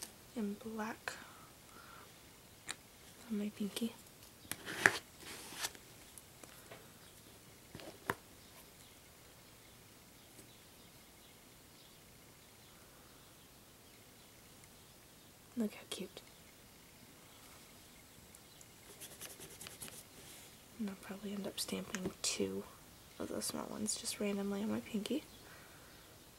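A small plastic bottle clicks and taps as it is handled.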